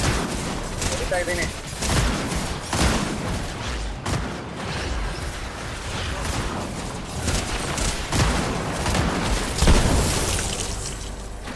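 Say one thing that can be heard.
Weapons fire in bursts of sharp blasts.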